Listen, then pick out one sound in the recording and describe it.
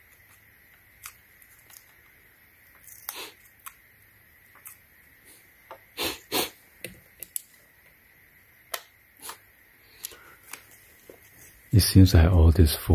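Plastic parts click and rattle as wires are handled.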